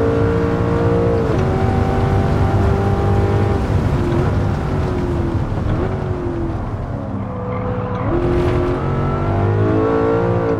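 Tyres hiss on a wet track.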